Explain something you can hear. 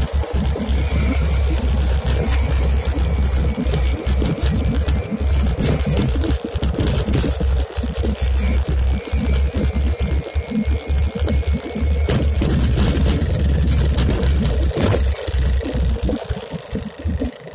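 Wind rumbles loudly against the microphone outdoors while riding.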